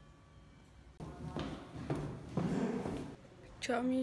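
Footsteps tap on stairs.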